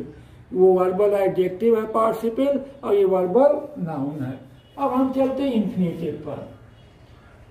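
A middle-aged man speaks calmly and clearly close by.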